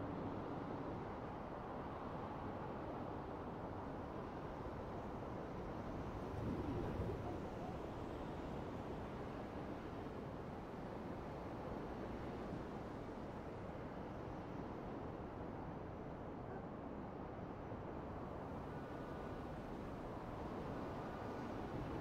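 A city hums steadily far below.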